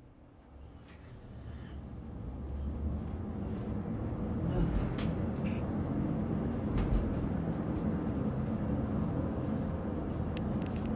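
A roller coaster car rumbles and clatters along its track, growing louder.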